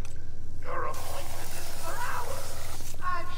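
Explosive gel sprays out with a steady hiss.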